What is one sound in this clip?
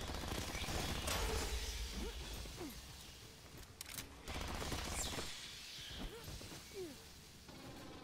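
A creature shrieks and hisses.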